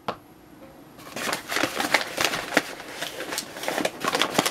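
A paper flour bag rustles and crinkles.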